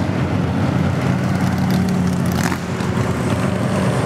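An old car rumbles past on the road.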